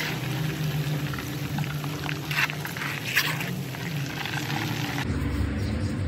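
Hot oil sizzles and bubbles in a pan.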